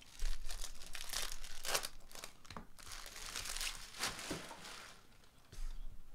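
A plastic wrapper crinkles and tears.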